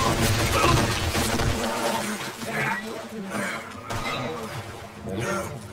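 A river rushes and gurgles.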